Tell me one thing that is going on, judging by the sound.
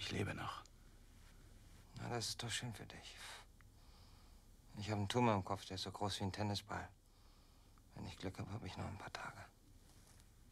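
A young man speaks quietly and slowly, close by.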